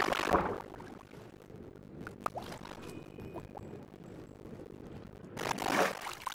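Water swishes as a swimmer moves underwater.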